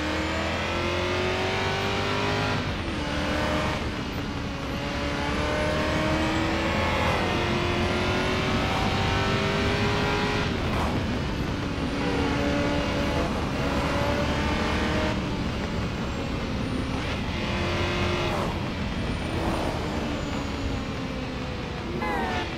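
A V8 sports car engine revs hard and shifts up through the gears.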